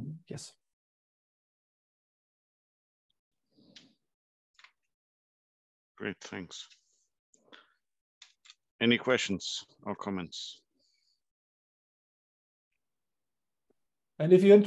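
A man speaks calmly over an online call, in short bursts with long pauses.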